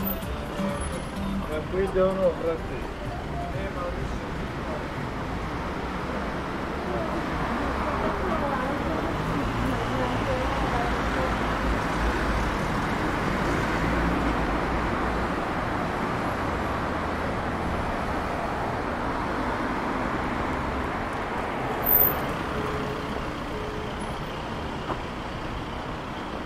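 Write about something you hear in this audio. City traffic hums steadily on a street nearby.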